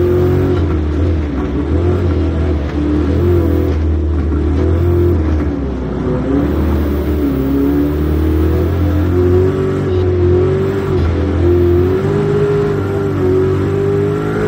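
Tyres skid and crunch over dirt.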